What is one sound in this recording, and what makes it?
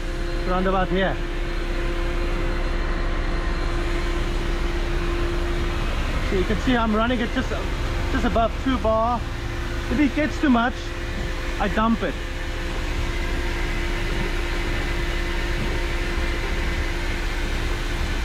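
A large truck engine idles nearby with a steady low hum.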